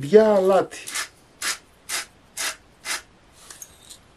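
A salt grinder grinds in short bursts.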